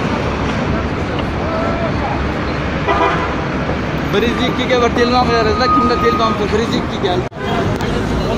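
A young man speaks in a raised, agitated voice nearby.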